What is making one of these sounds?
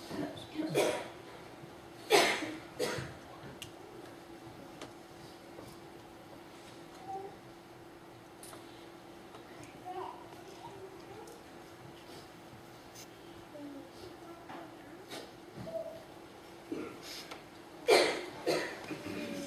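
Heels knock sharply on the floor in a quiet room.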